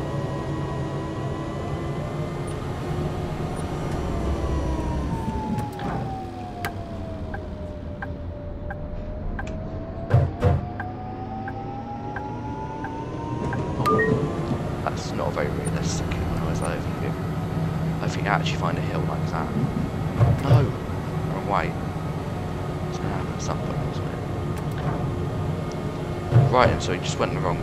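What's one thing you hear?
A tram rumbles along the tracks.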